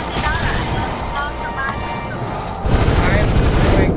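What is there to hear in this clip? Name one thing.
Coins jingle as they are collected.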